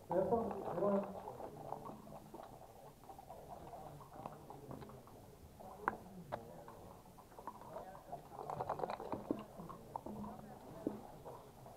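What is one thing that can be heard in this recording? Dice rattle and tumble across a backgammon board.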